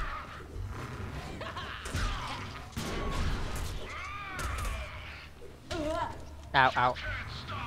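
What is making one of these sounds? Metal blades slash and clang in a fast fight.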